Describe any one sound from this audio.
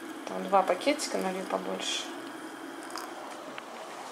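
Water pours from a kettle into a teapot.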